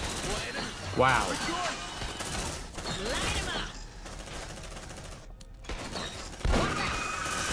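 Shotgun blasts boom.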